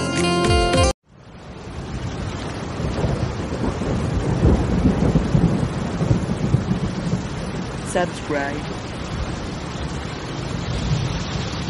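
Heavy rain splashes and patters hard onto water.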